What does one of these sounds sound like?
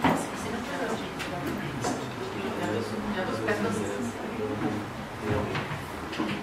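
Men talk quietly among themselves at a distance.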